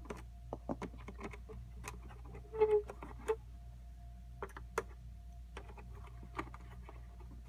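Small clicks and knocks come as a hand handles a plastic toy.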